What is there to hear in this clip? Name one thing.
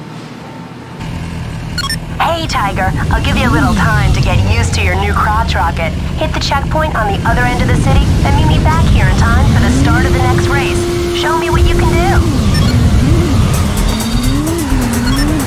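A motorcycle engine idles and revs up and down.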